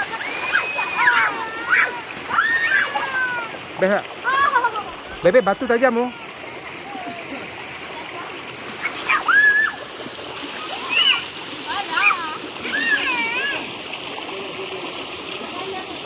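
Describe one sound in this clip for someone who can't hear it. Children splash through shallow water.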